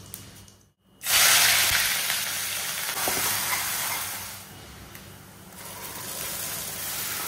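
Food sizzles loudly in hot oil.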